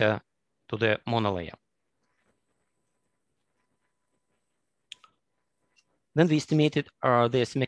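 A man speaks calmly over an online call, pausing between phrases.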